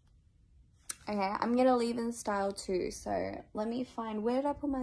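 A young woman speaks close to a phone microphone, with animation.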